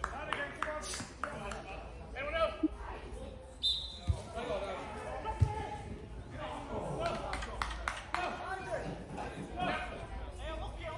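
Men shout and call to each other outdoors across an open pitch.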